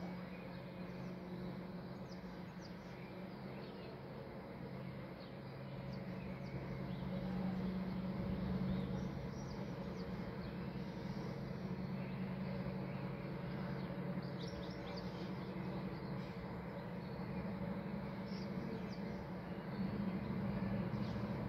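Wind rustles through the leaves of nearby trees.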